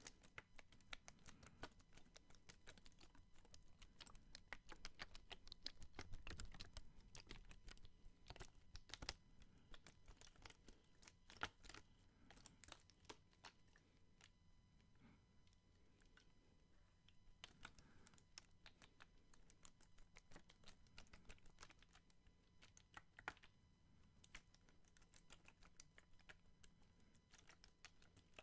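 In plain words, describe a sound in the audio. A plastic water bottle crinkles and crackles close to a microphone.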